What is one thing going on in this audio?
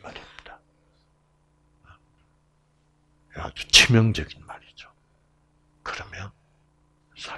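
An elderly man speaks calmly through a microphone, with pauses.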